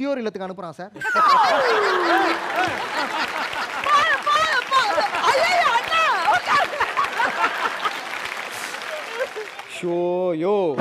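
A man laughs loudly and heartily.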